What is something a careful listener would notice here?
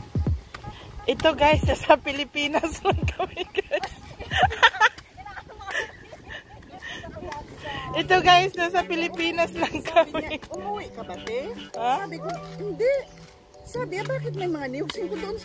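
Young women talk casually nearby.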